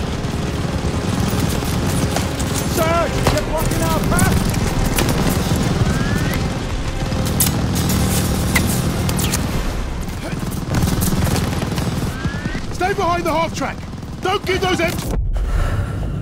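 Gunfire and explosions rumble and crackle nonstop in a battle.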